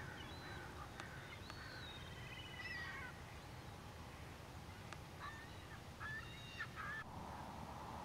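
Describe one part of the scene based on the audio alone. Shorebirds call in short chirps over water.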